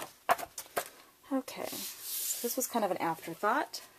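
Card stock slides and rustles on a hard surface.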